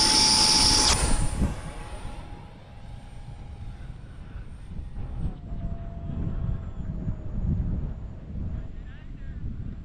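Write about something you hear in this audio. A model jet engine drones steadily high overhead, slowly fading.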